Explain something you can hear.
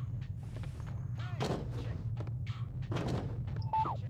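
A body thuds into a wooden crate.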